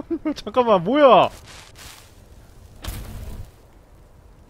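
A burst of flames whooshes up.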